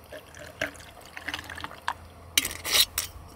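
Liquid pours over ice in a glass.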